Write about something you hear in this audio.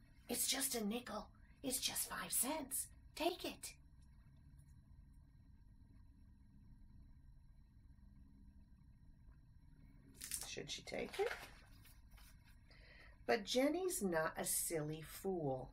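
A woman reads a story aloud with animation, close to a microphone.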